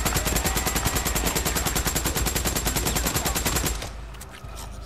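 A submachine gun fires a long, rapid burst.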